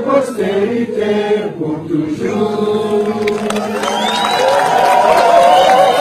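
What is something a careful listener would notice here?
A large crowd of men, women and children sings together loudly nearby.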